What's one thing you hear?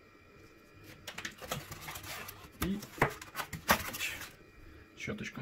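A cardboard insert scrapes and rustles as it is pulled from a box.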